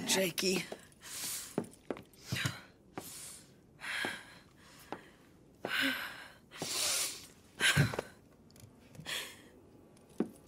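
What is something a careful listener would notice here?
A young woman sobs and breathes heavily.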